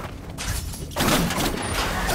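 A blade whooshes sharply through the air.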